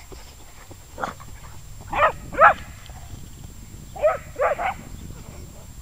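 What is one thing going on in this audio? A dog barks loudly and excitedly nearby, outdoors.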